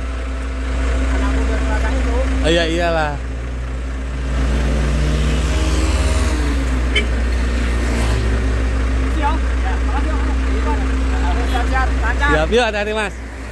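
A truck engine idles close by with a low rumble.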